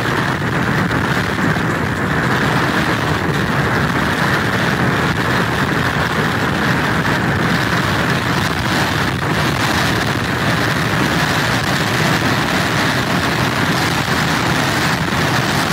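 Strong wind roars and buffets steadily outdoors.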